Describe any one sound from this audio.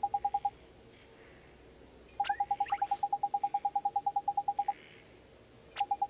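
Quick electronic blips tick rapidly in a steady run.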